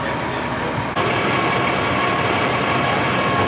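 A fire engine's motor idles with a steady hum and rumble nearby.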